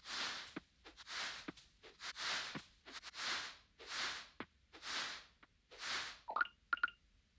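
Footsteps rustle through grass at an even pace.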